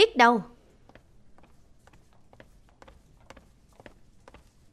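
Footsteps tap across a hard floor.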